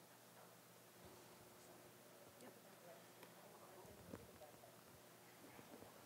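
A woman's footsteps pad softly across a carpeted floor.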